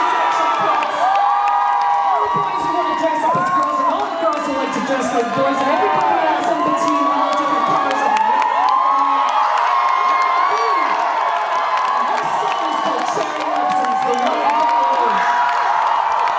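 A crowd sings along loudly.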